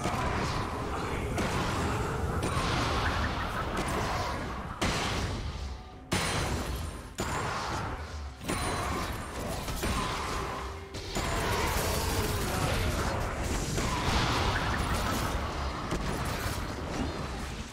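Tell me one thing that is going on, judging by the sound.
Magic spells whoosh and crackle in a fast-paced fantasy battle.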